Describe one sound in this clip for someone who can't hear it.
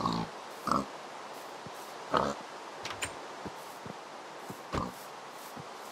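Pigs grunt and oink nearby.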